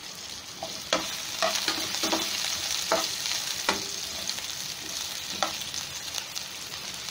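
A metal spoon scrapes and taps against a frying pan.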